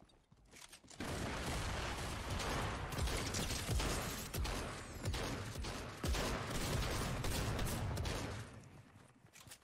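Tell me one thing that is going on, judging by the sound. Rapid gunfire crackles loudly in bursts.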